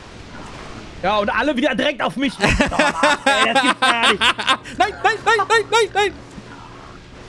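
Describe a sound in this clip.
Two men laugh loudly into close microphones.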